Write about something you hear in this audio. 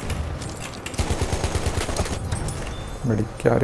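A machine gun fires a rapid burst of shots.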